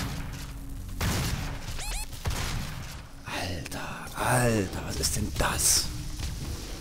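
Guns fire in loud bursts with heavy blasts.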